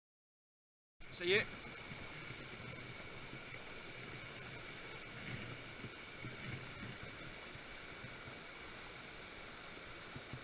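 Water trickles and flows over rocks nearby.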